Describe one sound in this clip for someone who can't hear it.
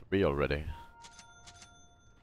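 A magic spell rings out with a bright, ringing chime.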